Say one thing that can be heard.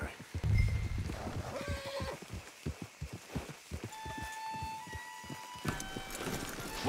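Horse hooves clop steadily on soft ground.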